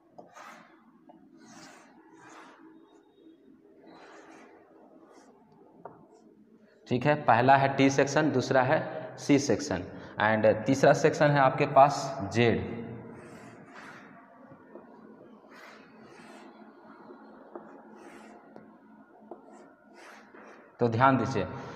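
Chalk scrapes and taps on a board.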